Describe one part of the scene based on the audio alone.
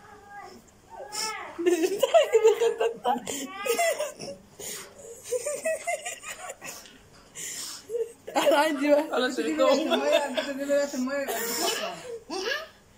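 A young woman laughs loudly and squeals close by.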